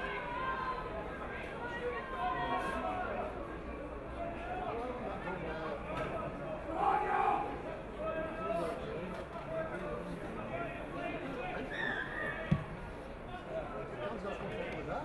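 A crowd of spectators chatters and murmurs outdoors.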